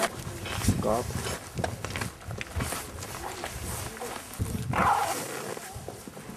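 Metal buckles and straps click and rustle.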